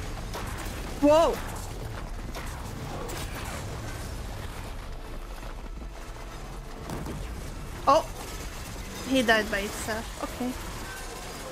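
A young woman exclaims and laughs with animation into a close microphone.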